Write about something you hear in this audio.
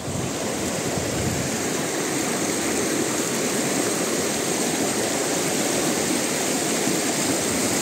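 A fast mountain river rushes over rocks.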